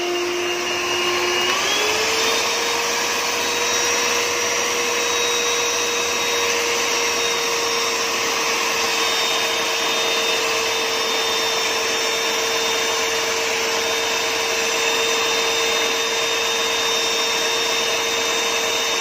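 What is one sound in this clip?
Mixer beaters churn through dry flour in a bowl.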